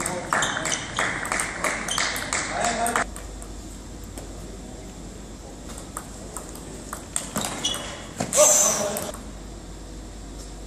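A table tennis ball clicks back and forth across a table and off paddles in an echoing hall.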